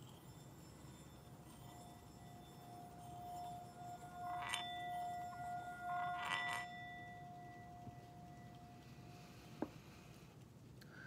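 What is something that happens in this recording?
A metal singing bowl hums with a steady ringing tone as its rim is rubbed.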